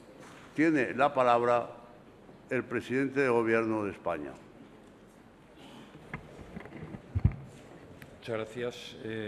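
An elderly man reads out a speech through a microphone, in pauses.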